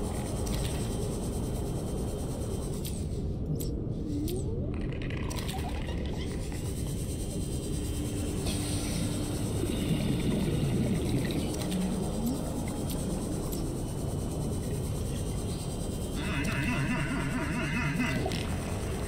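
Water rumbles low and steady around a small underwater vehicle as it glides.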